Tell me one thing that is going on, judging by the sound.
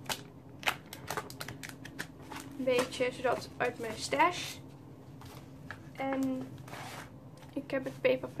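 Paper rustles and crinkles as it is handled close by.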